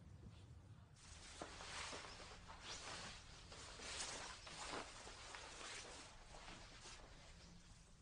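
Fabric rustles as a coat is pulled on.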